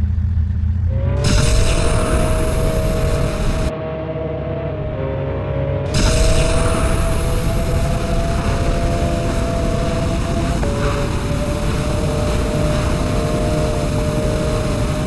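A motorcycle engine revs loudly and steadily.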